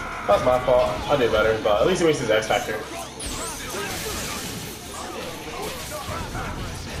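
Fighting game hits and blasts land in quick succession.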